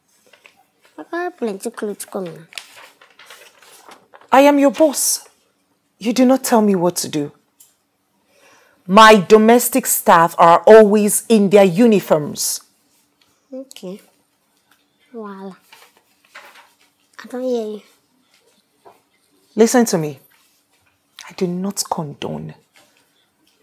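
A little girl speaks in a small high voice, close by.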